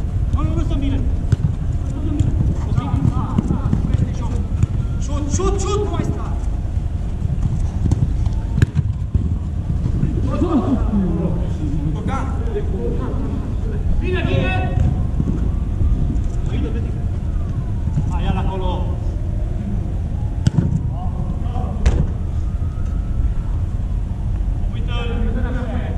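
Men shout to each other across an echoing indoor pitch.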